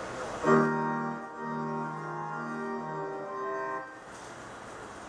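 A woman sings a short melody through a microphone.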